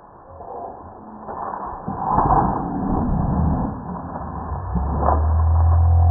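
A boy crashes and thuds onto the dirt.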